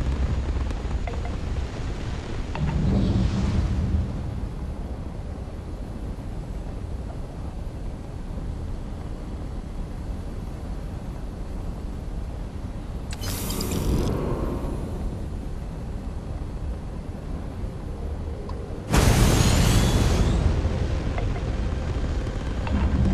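A spaceship engine rumbles steadily.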